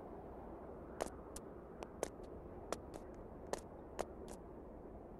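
Game footsteps tap on a hard floor.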